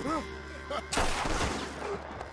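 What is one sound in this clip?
A gunshot bangs sharply.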